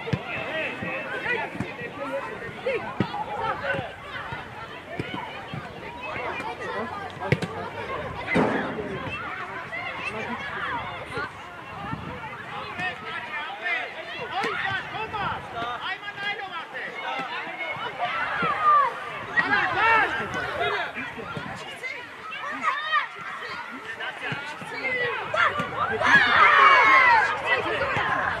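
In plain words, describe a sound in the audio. Children shout and call out excitedly outdoors.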